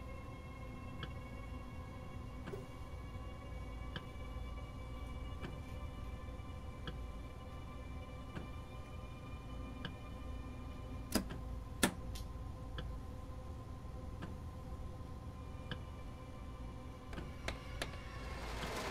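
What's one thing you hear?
Windscreen wipers thump back and forth in a steady rhythm.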